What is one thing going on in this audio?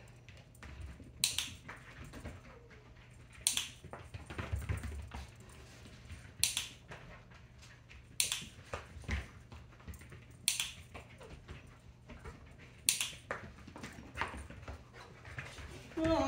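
A dog's paws patter and thump quickly across a rug.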